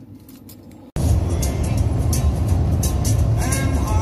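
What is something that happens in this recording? A car drives along a highway with steady road and wind noise.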